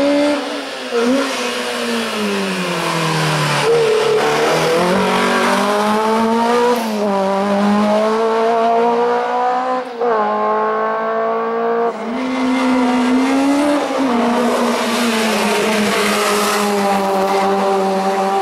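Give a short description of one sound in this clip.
A rally car engine revs hard and roars past, its pitch rising and falling through the gears.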